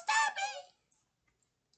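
A middle-aged woman calls out briefly in a lively, sing-song voice close by.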